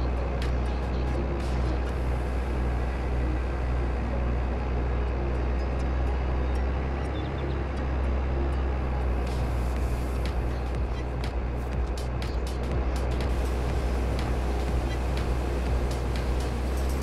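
A large engine idles with a steady low rumble.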